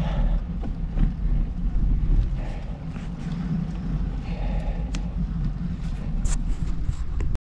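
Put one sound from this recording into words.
Footsteps scuff on asphalt at a walking pace.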